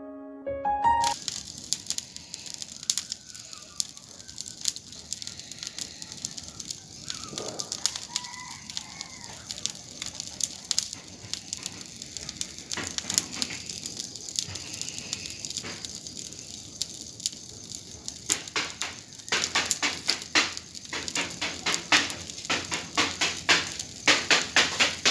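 A bonfire crackles and pops loudly outdoors.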